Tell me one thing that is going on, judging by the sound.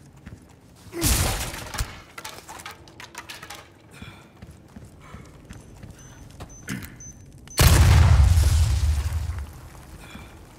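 A shotgun fires loud booming blasts that echo.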